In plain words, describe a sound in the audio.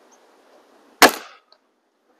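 A rifle shot cracks loudly outdoors.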